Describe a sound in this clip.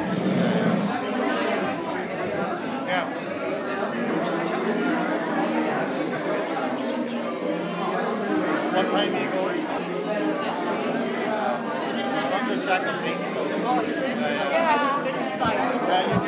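A crowd of men and women chatter and talk over one another in an echoing room.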